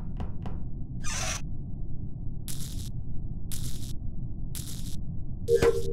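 Short electric buzzes sound as wires snap into place.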